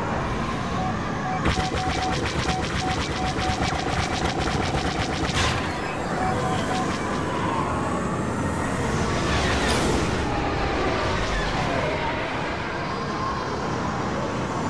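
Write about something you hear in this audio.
A starfighter's engines roar steadily.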